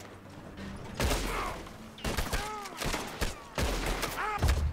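A gunshot rings out sharply.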